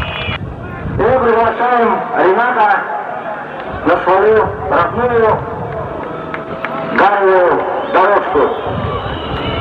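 A man speaks through a microphone outdoors.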